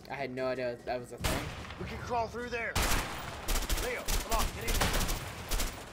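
Gunshots crack in sharp bursts.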